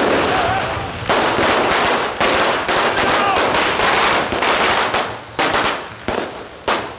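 Firecrackers pop and bang in quick bursts close by.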